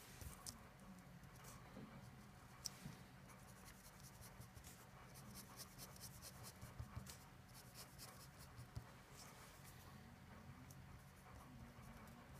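A pen scratches and taps on paper, drawing quick strokes.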